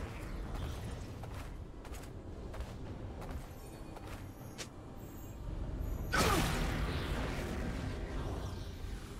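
Fantasy spell effects zap and whoosh in a video game battle.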